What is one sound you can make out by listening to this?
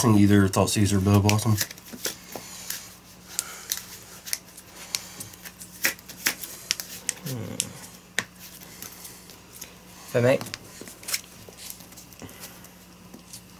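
Playing cards tap and slide on a soft mat.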